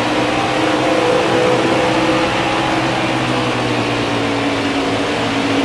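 Racing engines roar loudly at a steady high pitch.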